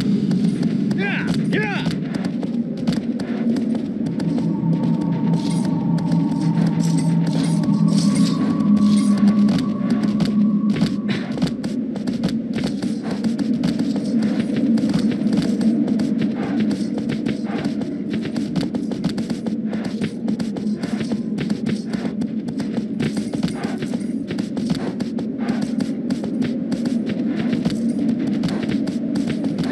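A horse's hooves gallop quickly over grassy ground.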